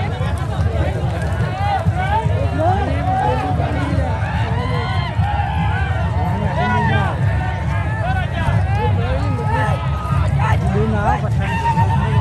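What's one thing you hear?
A large crowd of men and women shouts and talks excitedly outdoors, nearby and far off.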